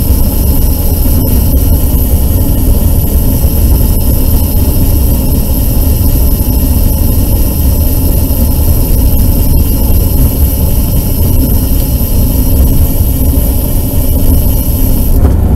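Wind rushes and buffets loudly against a moving bike.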